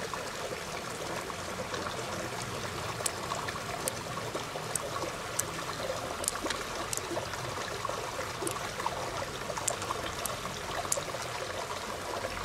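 Small beads click softly against each other and a shell.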